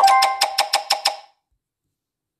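A rapid run of chiming notes plays.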